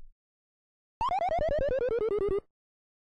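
A cartoon dog from an old video game snickers in quick, bleepy bursts.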